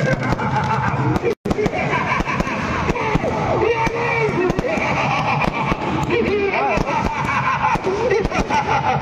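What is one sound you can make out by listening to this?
Firecrackers crackle and bang in rapid bursts outdoors.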